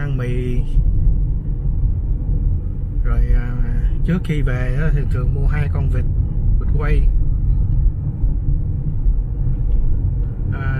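A car's engine and road noise rumble steadily inside the cabin.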